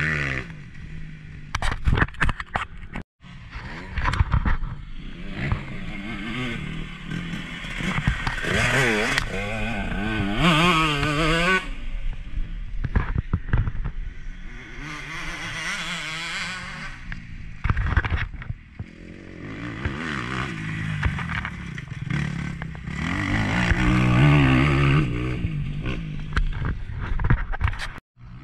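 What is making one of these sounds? A dirt bike engine revs and roars as it passes close by.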